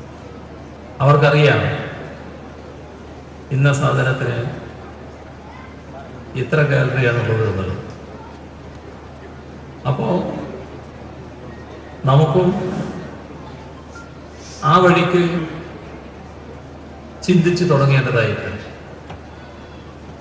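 An elderly man speaks slowly into a microphone over loudspeakers, in short phrases with pauses.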